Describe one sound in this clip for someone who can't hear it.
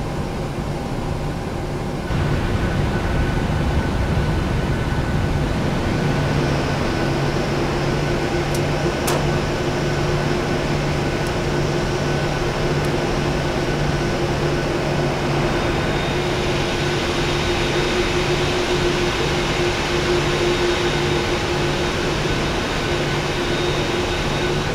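Jet engines hum and whine steadily.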